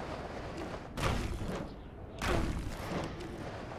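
A character's feet thud heavily on a rooftop on landing.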